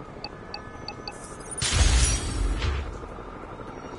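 An electronic keypad beeps.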